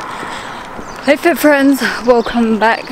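A young woman speaks animatedly, close to the microphone.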